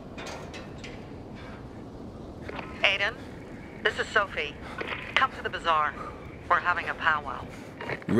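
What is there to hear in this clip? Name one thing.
A zipline trolley runs along a steel cable.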